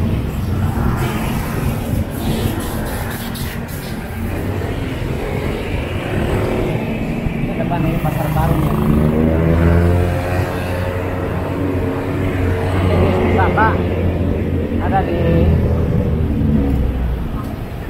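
Wind buffets past.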